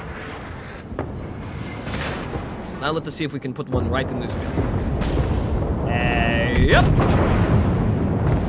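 Heavy naval guns fire with loud booms.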